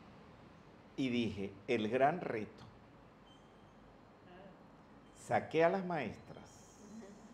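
An elderly man speaks with animation into a microphone, close by.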